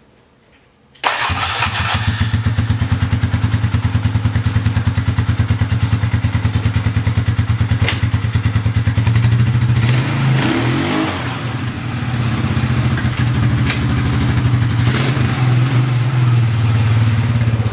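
A quad bike engine starts suddenly and idles with a steady, close throbbing.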